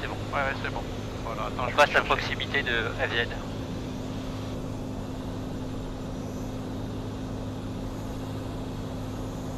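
A light aircraft's engine drones steadily throughout.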